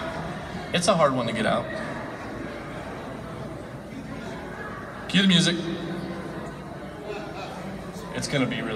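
A man speaks in short bursts through a microphone in a large echoing hall.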